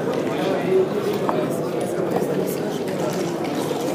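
Plastic checkers click as they are slid and set down on a wooden board.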